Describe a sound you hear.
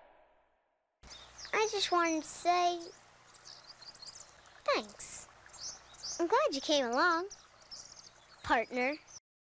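A young boy speaks close by with animation.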